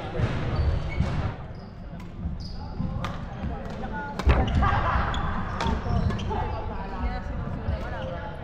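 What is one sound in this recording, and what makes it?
Shuttlecocks are struck sharply with rackets in a large echoing hall.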